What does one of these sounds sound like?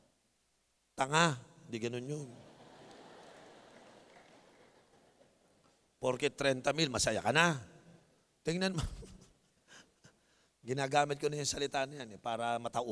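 A man speaks with animation into a microphone, his voice carried over loudspeakers in a large echoing space.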